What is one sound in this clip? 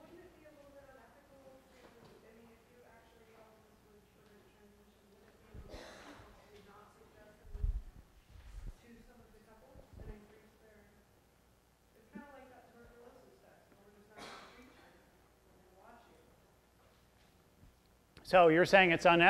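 A man lectures calmly in a large room, heard from a distance.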